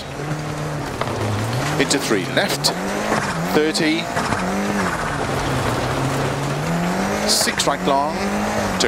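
A rally car engine roars, its pitch rising and falling with gear changes.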